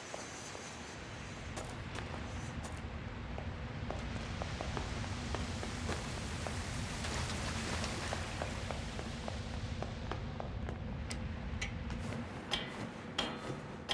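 Blades clash and strike again and again.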